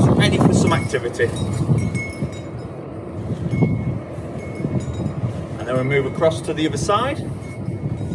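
A man speaks briefly outdoors.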